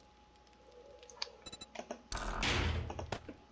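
A menu clicks softly as an item is selected.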